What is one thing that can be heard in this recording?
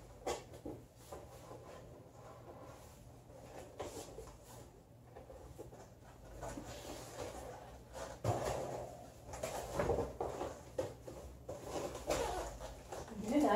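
Cardboard scrapes and rustles as a large box is handled.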